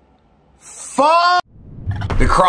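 A man shouts a long, drawn-out exclamation close by.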